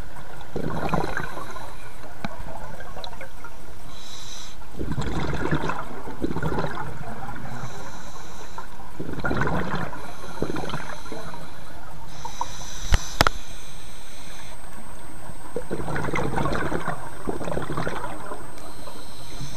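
Bubbles from a diver's breathing rumble and gurgle in bursts underwater.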